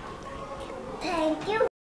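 A young boy speaks up close.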